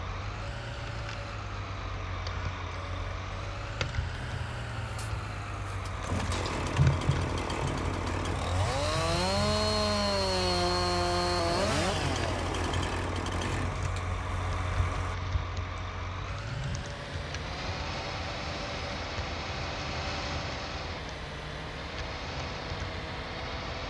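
A heavy machine engine hums steadily.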